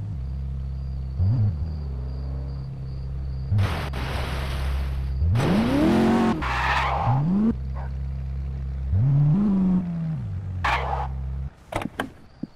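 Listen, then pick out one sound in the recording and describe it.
A sports car engine idles and revs up and down.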